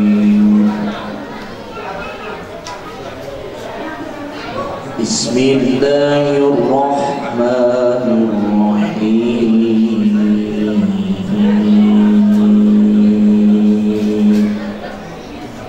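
A young man chants in a long, drawn-out melody into a microphone.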